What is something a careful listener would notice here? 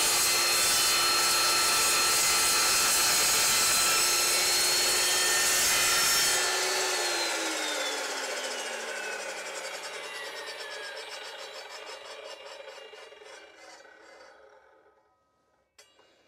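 A power saw motor whines loudly, then slowly winds down.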